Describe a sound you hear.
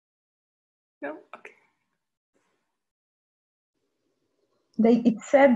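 An older woman speaks over an online call.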